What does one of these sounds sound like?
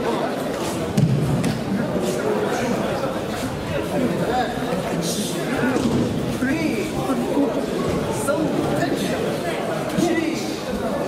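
Bodies slap and land on mats with dull thumps.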